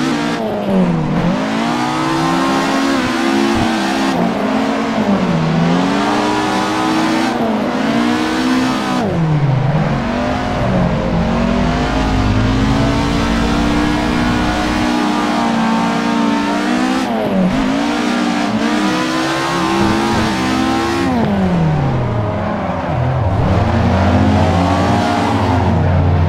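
Tyres screech as a car slides through the corners.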